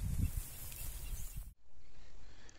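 A snake slithers through dry grass with a soft rustle.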